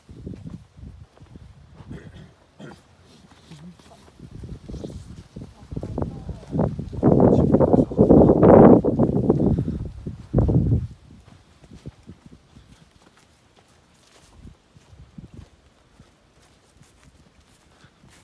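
Footsteps crunch on dry, leaf-strewn ground.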